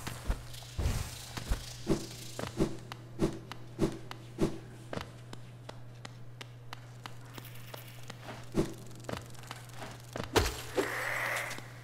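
Light footsteps patter quickly across a hard floor.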